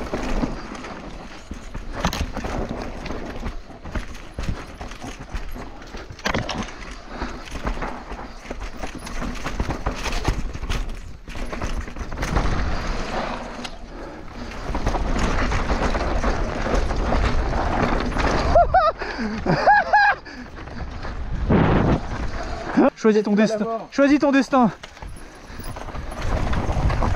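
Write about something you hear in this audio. A bicycle rattles and clunks over bumps and roots.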